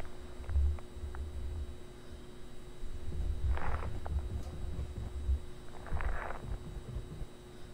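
A fluorescent light hums steadily.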